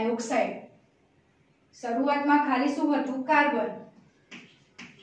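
A young woman speaks calmly and clearly, as if teaching.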